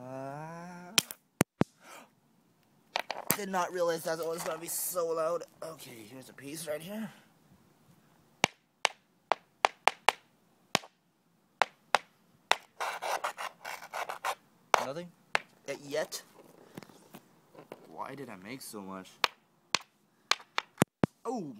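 A small stone clicks and taps against hard pavement.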